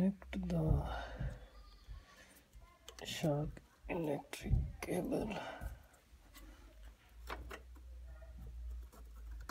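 Plastic wiring connectors click and rattle as they are handled.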